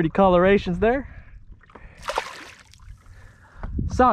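A fish splashes into the water.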